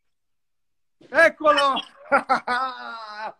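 A man laughs loudly and excitedly through an online call.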